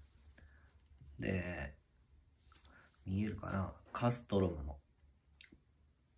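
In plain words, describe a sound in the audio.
A metal clip clicks and clinks against a leather strap.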